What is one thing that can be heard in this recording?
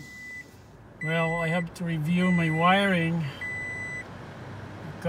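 A car's warning chime beeps in short tones.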